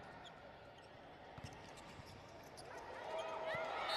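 A volleyball thuds off a player's hand.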